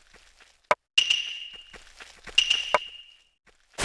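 Short electronic beeps chime twice.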